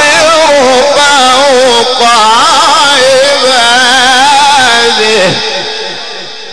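A man chants loudly through a microphone, with a strong echo.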